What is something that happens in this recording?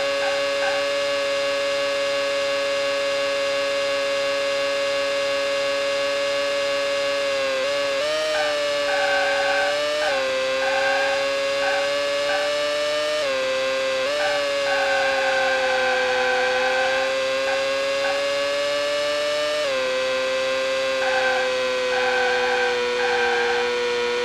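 A racing car engine whines steadily at high revs, dropping in pitch at each gear change.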